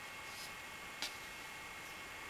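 A folding knife blade snaps shut with a sharp click.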